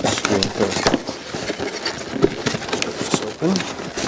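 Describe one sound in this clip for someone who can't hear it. Paper sheets slide and rustle against cardboard.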